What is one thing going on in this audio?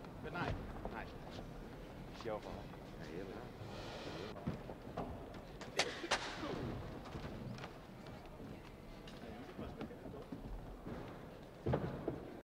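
Things knock and bump on a wooden stage in a large echoing hall.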